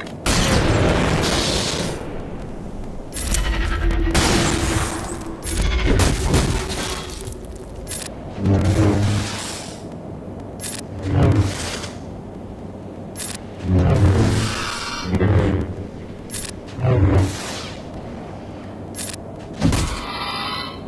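Lightsabers hum and clash in a fight.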